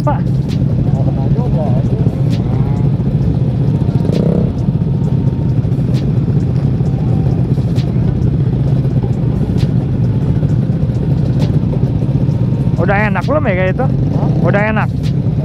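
Many motorcycle engines idle and rumble steadily close by.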